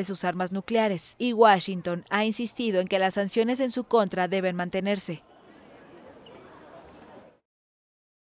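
A crowd murmurs in a large indoor hall.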